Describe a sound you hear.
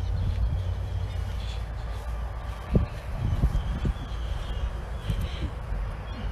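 A cloth rubs against glass.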